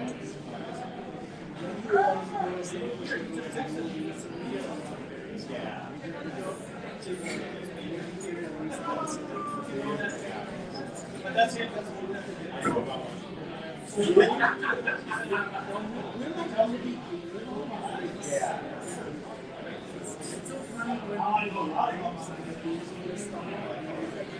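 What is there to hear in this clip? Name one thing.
Men and women talk casually around a table, heard from a distance.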